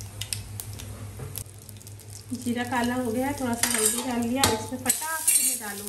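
Spices sizzle in hot oil.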